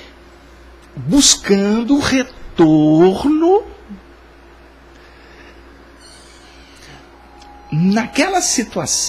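A middle-aged man speaks with animation into a close microphone, pausing between phrases.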